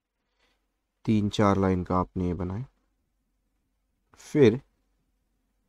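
A man speaks calmly and close into a microphone, in short bursts.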